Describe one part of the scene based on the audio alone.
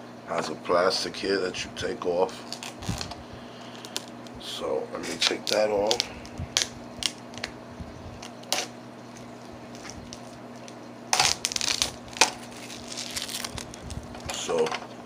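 Plastic parts click and snap in a man's hands.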